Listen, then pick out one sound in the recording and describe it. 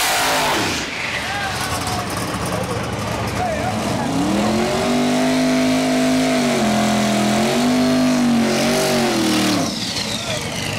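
A race car engine revs loudly in a burnout.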